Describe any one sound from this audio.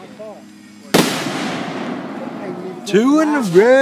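Sparks crackle and hiss after a firework burst, fading away.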